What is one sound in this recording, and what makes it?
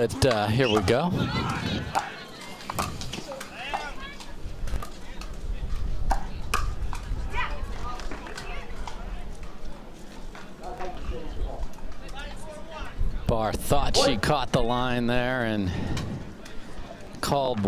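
Paddles pop against a plastic ball in a rally.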